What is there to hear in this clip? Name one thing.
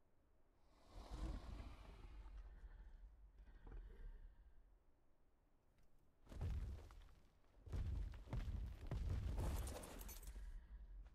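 A large beast growls and roars in loud bursts.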